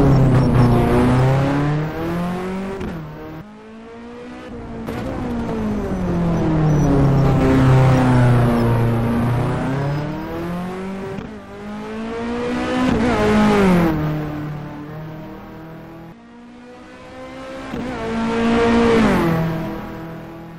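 A race car engine shifts through gears, its pitch dropping sharply.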